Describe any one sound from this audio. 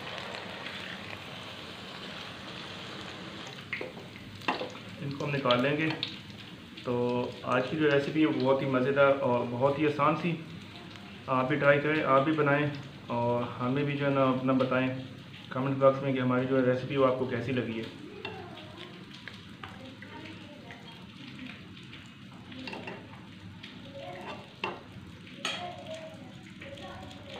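Hot oil sizzles softly in a pan.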